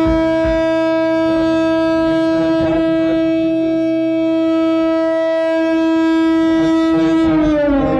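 An electric guitar holds a long, loud, droning note that bends down at the end.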